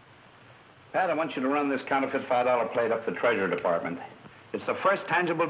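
An elderly man speaks firmly and at length.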